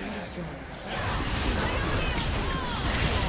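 Magic blasts and zaps crackle loudly in a fantasy battle.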